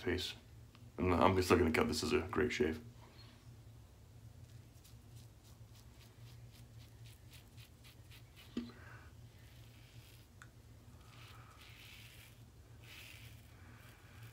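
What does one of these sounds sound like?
A razor blade scrapes across stubble with short rasping strokes.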